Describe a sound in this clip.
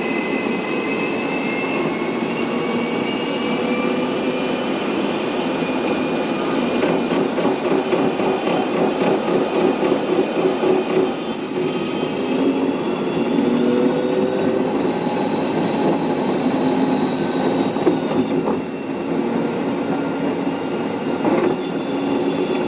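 A bus engine hums steadily with a whining drone.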